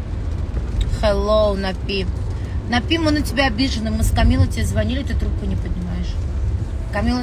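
A young woman talks close by in a lively way.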